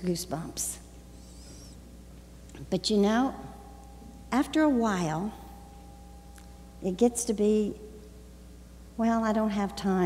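An elderly woman speaks expressively through a microphone in a large echoing hall.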